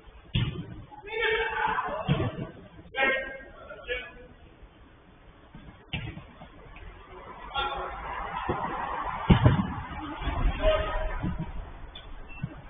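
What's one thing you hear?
Men shout and call out to each other from a distance in a large echoing space.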